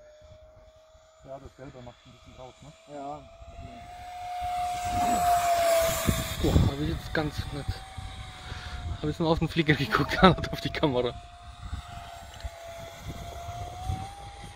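A small electric ducted-fan model jet whines overhead.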